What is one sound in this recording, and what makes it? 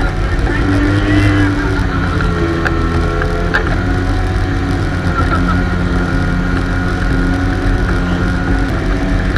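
A motorboat engine drones steadily close by.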